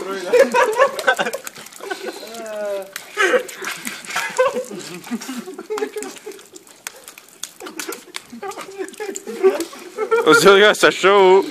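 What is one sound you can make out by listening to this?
Young men slurp and munch on watermelon.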